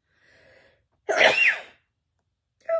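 A woman coughs into her hand.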